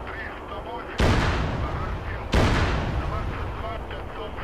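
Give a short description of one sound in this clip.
Loud explosions boom and rumble away.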